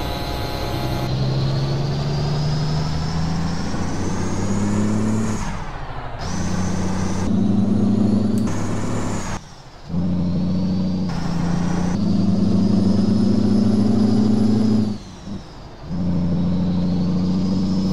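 A truck engine roars, revving up and dropping between gear shifts.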